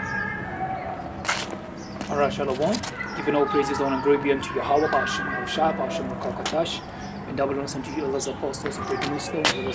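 A young man talks close to the microphone.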